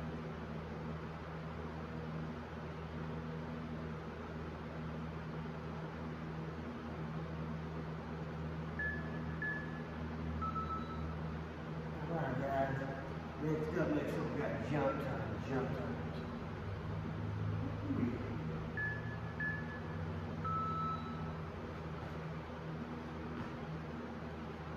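A fan hums steadily.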